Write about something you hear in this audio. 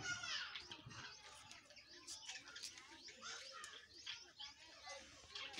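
A parrot chirps and squawks close by.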